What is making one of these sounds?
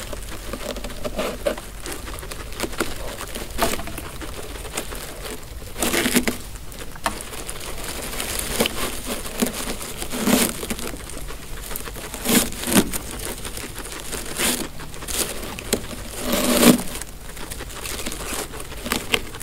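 Dry hay rustles as it is tugged from a rack.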